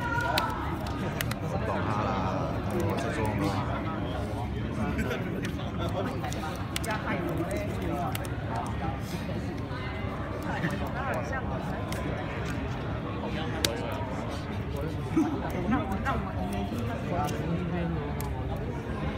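Playing cards tap and slide softly on a play mat.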